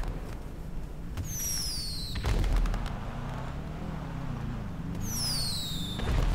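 A car engine roars and revs while the car drifts.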